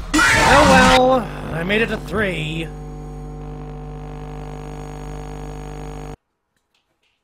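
A steady electronic static buzz hums and then cuts off.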